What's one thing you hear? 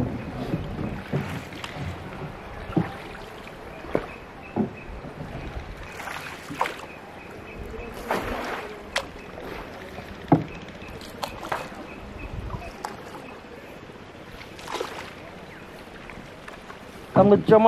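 A wooden paddle dips and splashes in calm water.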